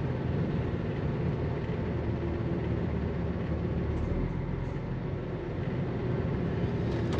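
Tyres roll over a rough road surface.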